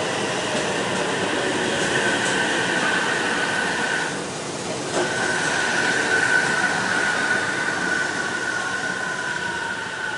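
A train's brakes squeal steadily as it slows.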